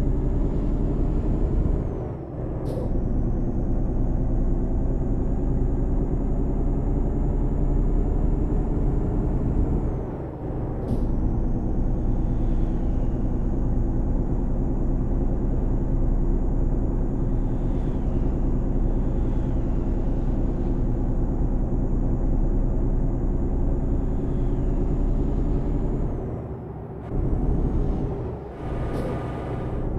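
A truck engine hums steadily while driving.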